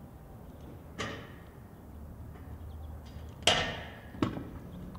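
A scooter deck bangs and scrapes along a metal handrail.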